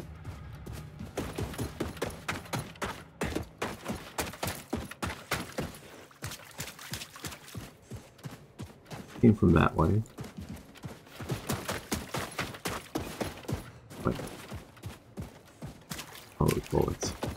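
Footsteps crunch over loose rubble at a steady walking pace.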